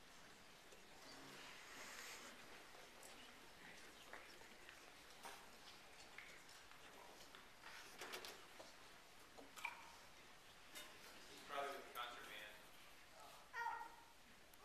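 Teenage girls and boys chat quietly in a large, echoing hall.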